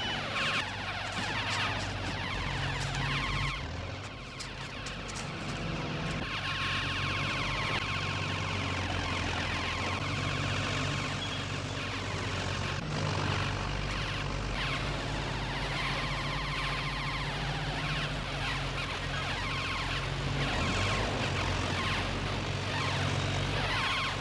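A bulldozer engine rumbles and roars.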